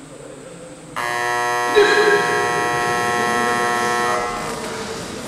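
A young man lets out a long, loud shout in an echoing hall.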